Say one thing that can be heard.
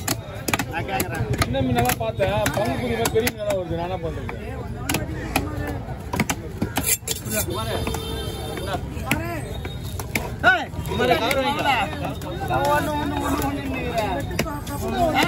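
A heavy knife chops into fish on a wooden block with sharp knocks.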